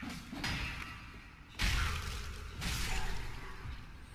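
Metal weapons clash and clang with sharp ringing hits.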